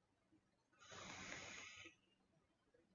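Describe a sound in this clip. A man breathes out a long puff of vapour.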